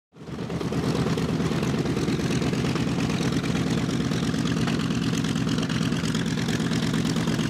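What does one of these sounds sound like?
Propeller engines roar and rumble steadily close by.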